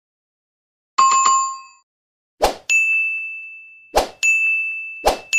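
A bell chimes brightly.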